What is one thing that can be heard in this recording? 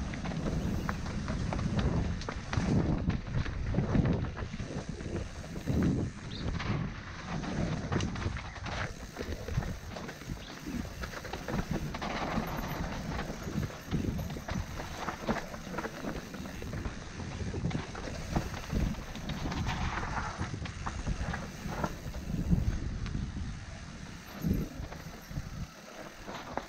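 A bike's frame and chain clatter over bumps.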